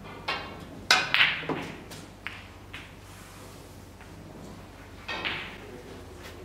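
Snooker balls click together through a television speaker.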